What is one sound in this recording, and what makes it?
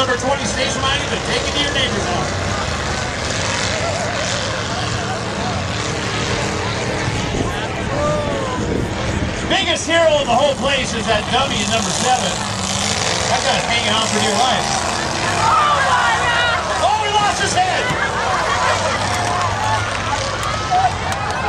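A large outdoor crowd cheers and shouts.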